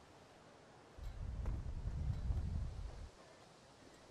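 Wind blows outdoors with a low rumble.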